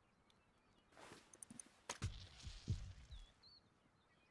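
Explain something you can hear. A rock strikes with dull thuds.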